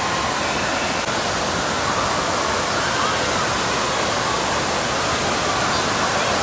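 Water splashes as children play in a wave pool.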